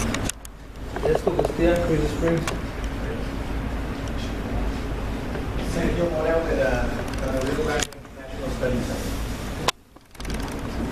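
A man speaks to a group, heard from across a large echoing room.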